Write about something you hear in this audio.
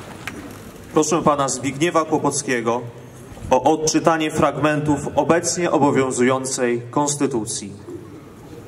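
A man speaks formally into a microphone, heard through loudspeakers outdoors.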